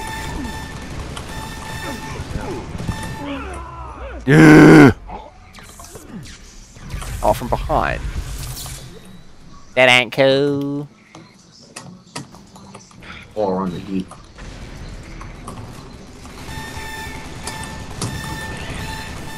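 A laser gun fires in rapid, buzzing bursts.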